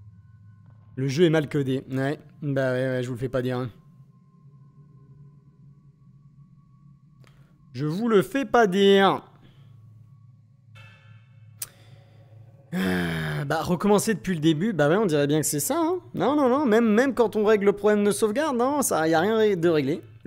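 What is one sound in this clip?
A young man talks with animation, close by.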